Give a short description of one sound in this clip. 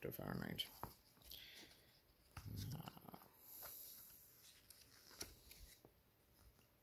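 Paper rustles and crinkles as pages are handled close by.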